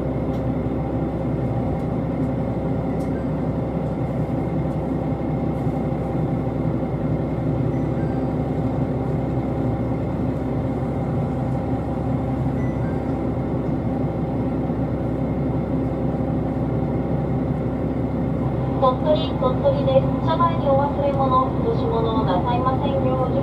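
A train rumbles and hums steadily.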